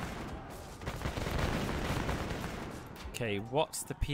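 Musket volleys crackle and rumble in a battle.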